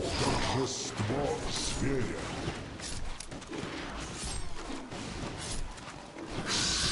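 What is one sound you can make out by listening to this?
Weapons clash and hit in quick succession.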